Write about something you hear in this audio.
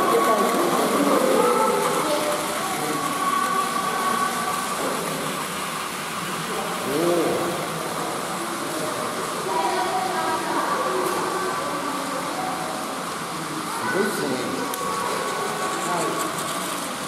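Battery toy trains whir as they roll along plastic tracks.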